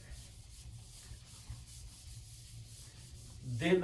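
A whiteboard eraser rubs across the board.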